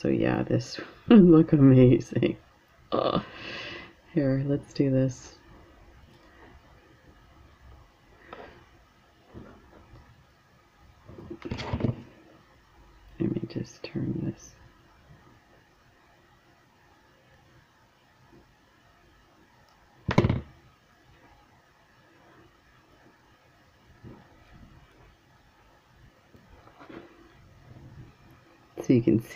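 Small beads and metal jewelry parts click softly against each other.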